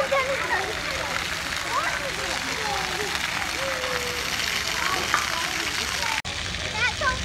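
A water jet splashes steadily onto wet ground.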